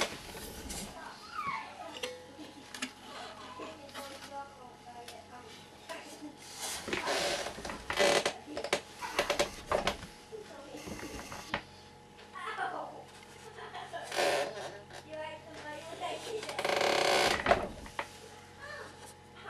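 A wooden instrument knocks and bumps as it is handled.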